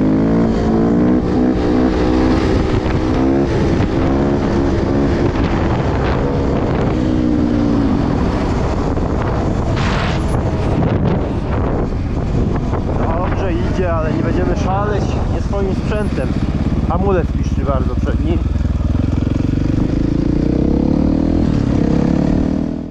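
A motorbike engine drones close by, its pitch rising and falling as it speeds up and slows.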